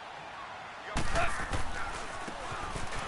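Football players' pads thud and clash as a play starts.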